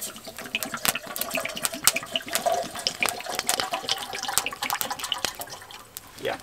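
Water pours into a kettle.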